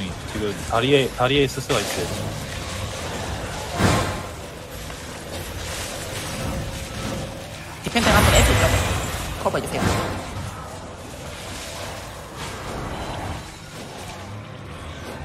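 Magic spells burst and crackle in a busy battle.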